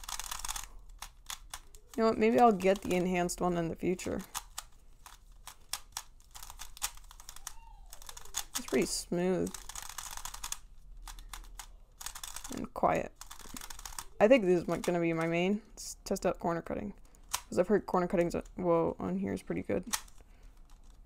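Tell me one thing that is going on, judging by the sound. Plastic puzzle pieces click and clack as they are turned.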